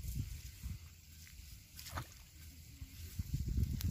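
Water splashes as a man scoops with his hands.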